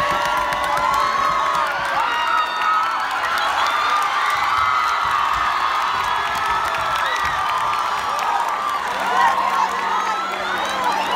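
Teenage girls shriek with excitement close by.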